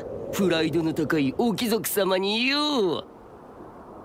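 A boy shouts angrily.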